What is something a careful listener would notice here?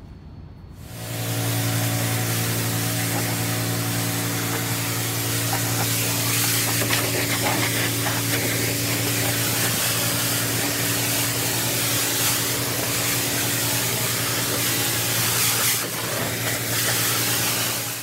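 A pressure washer engine runs with a steady drone.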